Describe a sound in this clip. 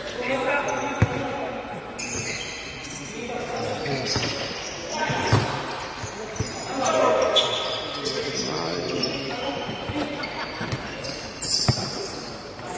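A ball is kicked with sharp thuds in a large echoing hall.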